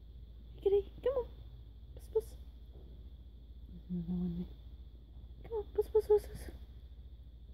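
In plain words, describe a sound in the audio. Cats meow several times nearby.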